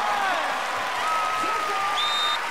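A young woman laughs and cheers.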